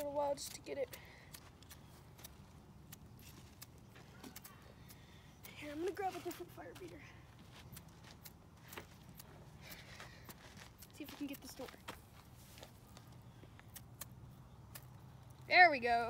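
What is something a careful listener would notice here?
Small sticks snap and crackle as kindling is broken.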